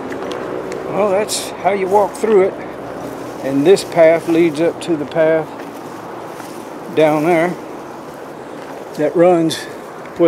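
An older man speaks calmly and close by.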